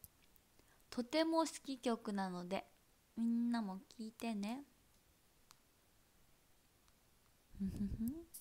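A young woman speaks animatedly and close up, heard through a microphone.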